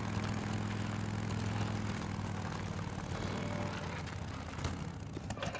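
A motorcycle engine idles with a steady low hum.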